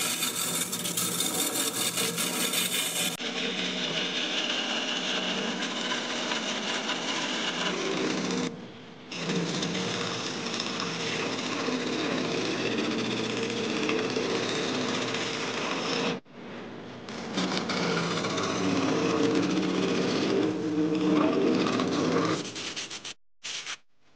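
A wood lathe spins steadily.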